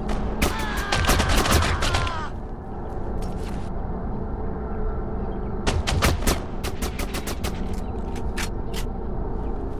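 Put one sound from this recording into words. Pistol shots ring out in rapid bursts.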